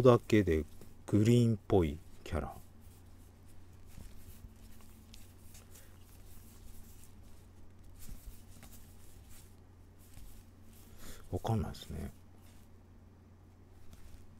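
Trading cards flick and rustle in a man's hands.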